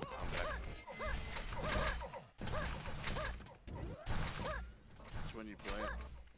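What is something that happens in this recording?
A gun in a game fires energy beams in rapid bursts.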